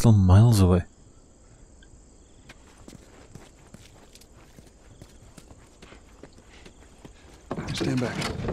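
Footsteps scuff softly on concrete.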